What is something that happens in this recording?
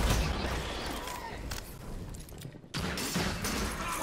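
A gun is reloaded with metallic clicks.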